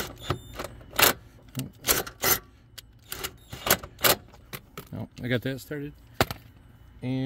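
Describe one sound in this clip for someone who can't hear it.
Metal parts clink and knock against each other.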